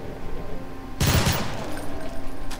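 A rifle fires a short burst with a loud boom.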